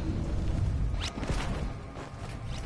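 A parachute snaps open with a whoosh.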